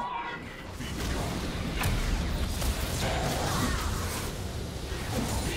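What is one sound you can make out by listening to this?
Game sword strikes and impacts clash rapidly.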